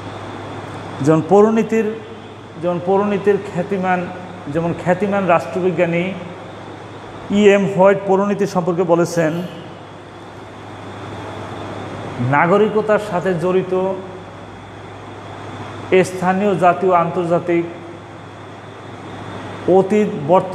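A middle-aged man speaks clearly and calmly, close by, in short phrases with pauses.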